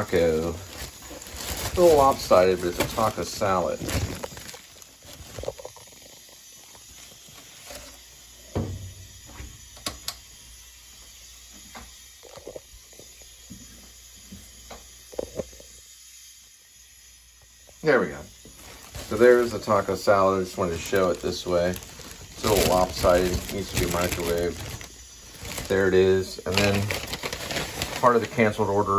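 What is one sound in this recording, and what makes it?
A plastic bag rustles and crinkles as hands handle it.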